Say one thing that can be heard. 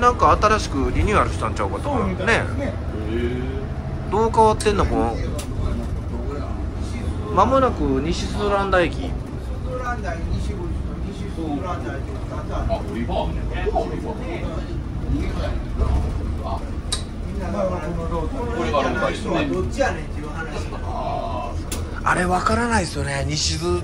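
A bus engine hums steadily with a low rumble.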